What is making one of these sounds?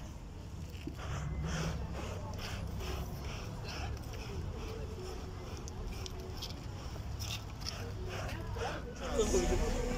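Bellows puff air into a fire in a steady rhythm.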